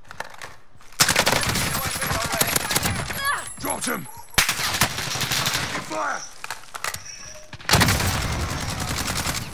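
A rifle fires rapid bursts of loud gunshots.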